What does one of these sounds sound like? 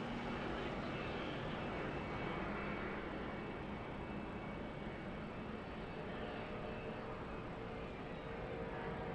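A racing truck engine roars loudly at high speed.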